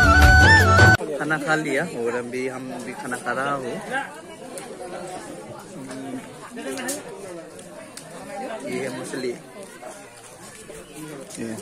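Many men and women chatter nearby.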